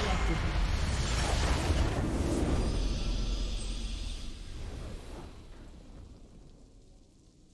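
A loud explosion booms and rumbles, then slowly fades away.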